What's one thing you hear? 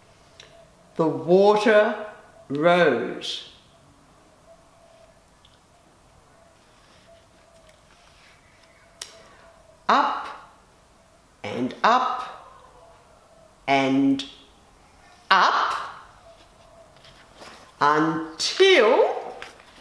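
An elderly woman reads aloud slowly and expressively, close by.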